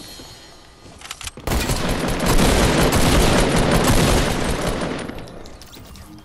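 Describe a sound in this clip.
Gunshots blast loudly in quick succession.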